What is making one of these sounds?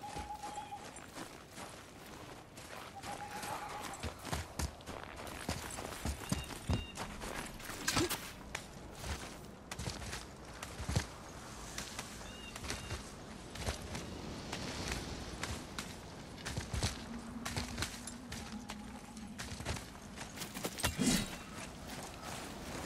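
Heavy footsteps crunch through snow.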